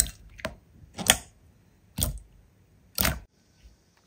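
Sticky slime squelches and pops as fingers press and stretch it.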